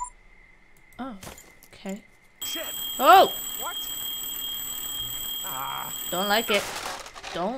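A young woman exclaims and talks with animation into a microphone.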